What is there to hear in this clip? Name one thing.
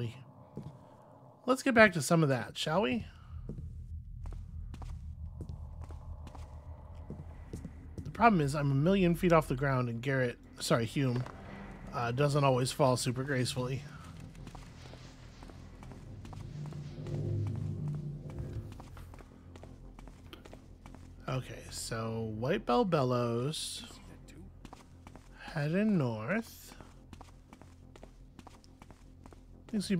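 Footsteps tread on stone paving.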